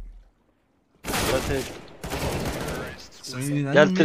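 Gunfire bursts loudly in quick succession.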